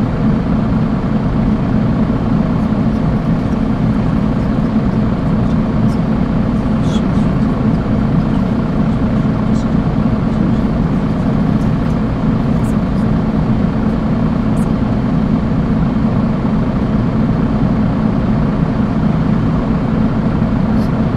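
A bus engine idles with a steady, low rumbling hum.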